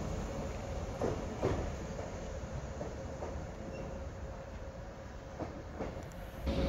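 Steel wheels clack over rail joints.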